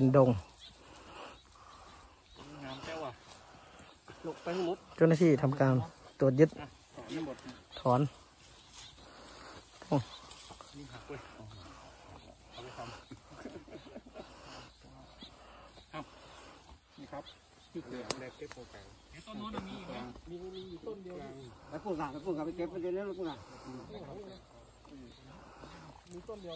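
A man talks nearby outdoors.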